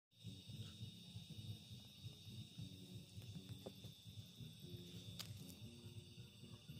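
A wood fire crackles and pops under a pot.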